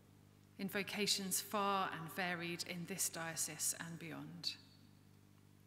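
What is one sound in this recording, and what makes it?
A woman reads out calmly into a microphone.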